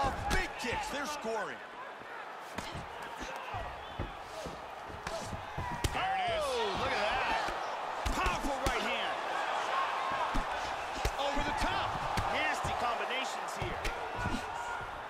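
Punches and kicks land with dull thuds.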